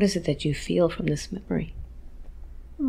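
A woman speaks quietly, close to a microphone.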